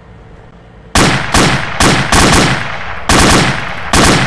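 Rapid gunfire cracks loudly nearby.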